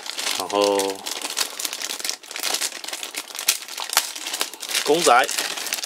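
A plastic bag crinkles and rustles as it is handled.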